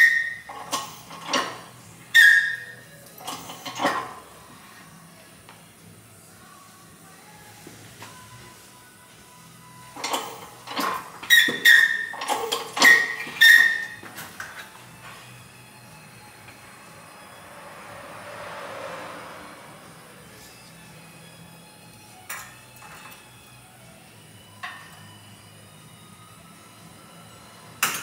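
Metal parts clink and clank sharply.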